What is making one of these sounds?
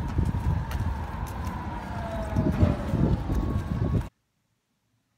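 Footsteps tread on pavement outdoors.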